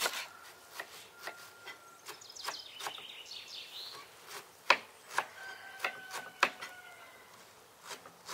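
A knife chops on a cutting board with sharp, uneven taps.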